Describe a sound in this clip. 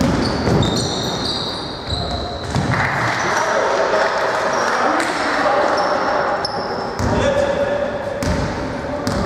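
A basketball bounces on the court with dull thuds.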